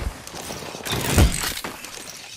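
A smoke canister bursts with a hiss.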